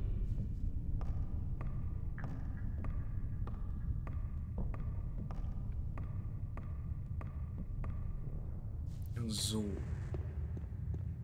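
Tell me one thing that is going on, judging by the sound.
Footsteps clunk steadily on wooden ladder rungs.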